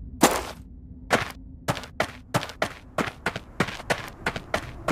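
Footsteps tap on stone at a steady pace.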